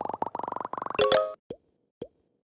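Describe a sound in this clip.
A short cheerful chime plays as a level ends.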